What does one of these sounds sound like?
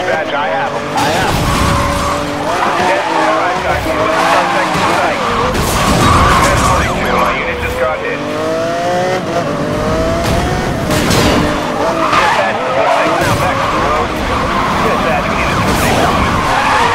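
A car scrapes and crashes against another car with a sharp metallic bang.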